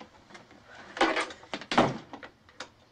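A door handle clicks and rattles.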